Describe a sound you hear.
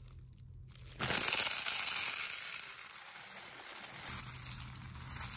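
Small plastic beads clatter and rattle as they pour into a metal pot.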